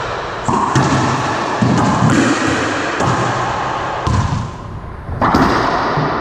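A ball smacks hard against walls and racquets in a large echoing room.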